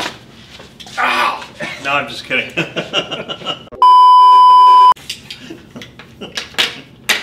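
A younger man laughs and talks with animation.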